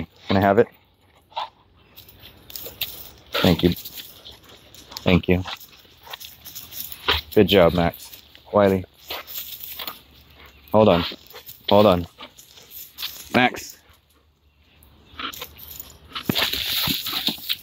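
Paws rustle through dry leaves on the ground.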